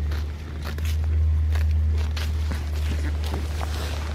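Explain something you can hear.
A goat tears and chews grass close by.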